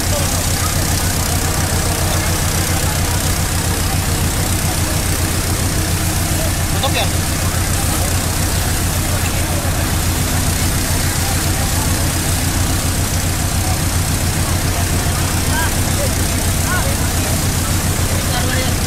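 A crowd of men murmur and call out nearby.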